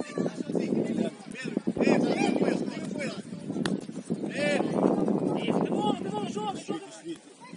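Young players shout and call to each other across an open outdoor pitch.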